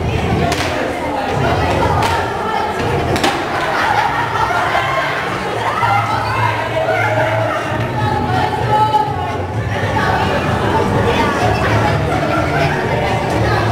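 Young girls sing together with animation.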